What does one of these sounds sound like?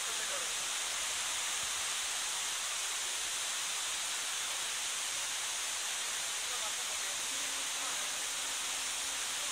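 A waterfall rushes and splashes steadily onto rocks outdoors.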